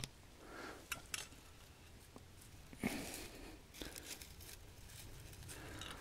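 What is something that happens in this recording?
Dry leaves and twigs rustle and crackle as a hand brushes through them.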